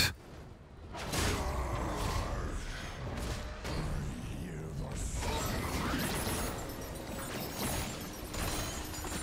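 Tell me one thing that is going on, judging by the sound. Game sound effects whoosh and clash.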